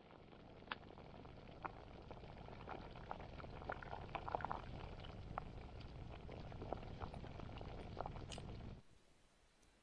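Water bubbles at a rolling boil in a pot.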